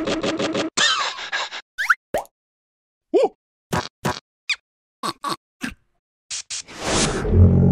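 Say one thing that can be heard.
A small creature squeaks and babbles in a high, excited voice.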